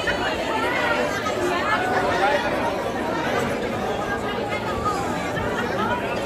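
A large crowd chatters and shouts excitedly close by.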